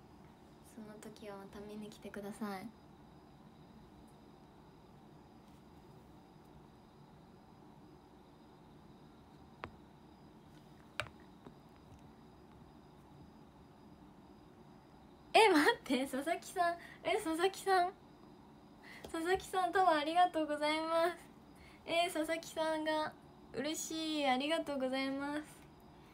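A young woman speaks close to a microphone, with animation.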